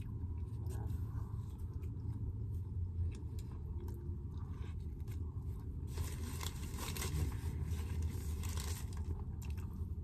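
A young woman bites into crusty bread with a crunch.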